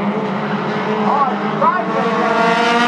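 Tyres squeal briefly as the cars take a bend.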